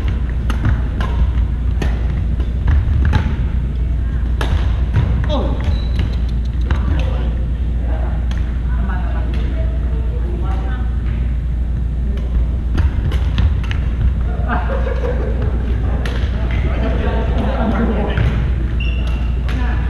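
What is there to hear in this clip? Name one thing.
Balls thud and smack as players throw and catch.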